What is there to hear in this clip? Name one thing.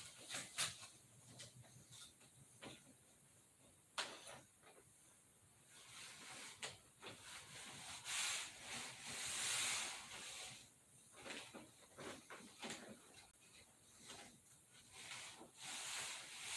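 A large paper sheet rustles as it is handled.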